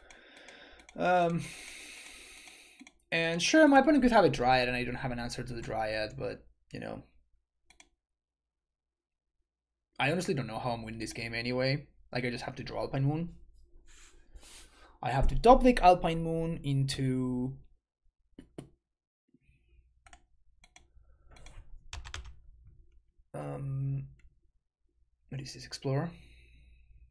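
A young man talks casually into a close microphone, with pauses.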